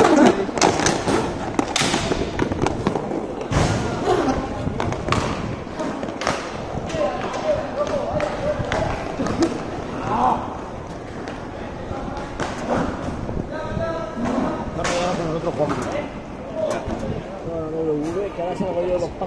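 Hockey sticks clack against a ball and each other.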